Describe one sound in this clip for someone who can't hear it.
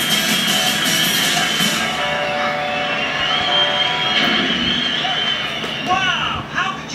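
Upbeat electronic music plays through a loudspeaker.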